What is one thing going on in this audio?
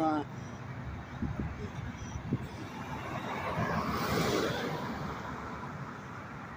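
A car drives past close by with a rushing whoosh of tyres on the road.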